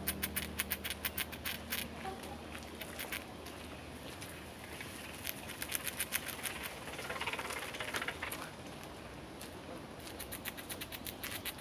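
A squirrel gnaws on a nut.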